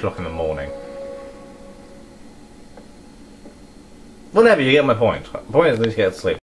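A video game's sounds play through a television speaker.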